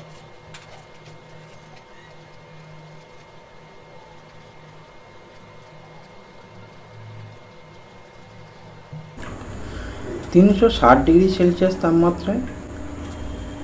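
A felt-tip pen scratches softly on paper.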